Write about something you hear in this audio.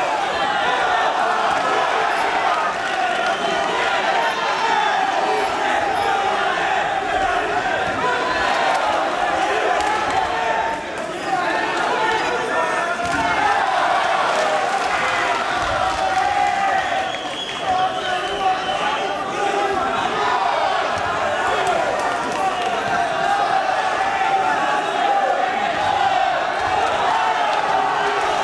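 A crowd of spectators shouts and cheers throughout in a large echoing hall.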